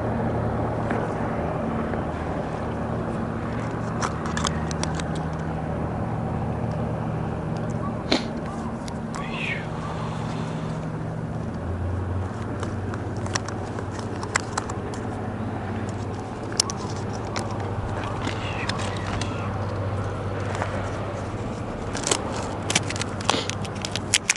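Fishing line and tackle rustle and click in a man's hands.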